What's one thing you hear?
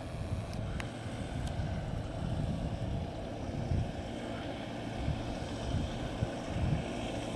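Wind blows in low gusts outdoors.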